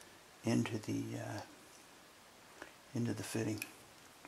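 A brass fitting clicks onto a pipe.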